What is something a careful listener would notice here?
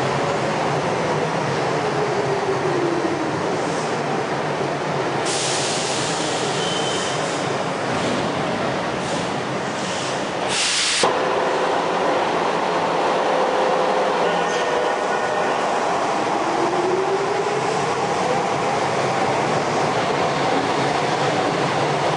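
A subway train rumbles along the track, slowing to a stop and later pulling away.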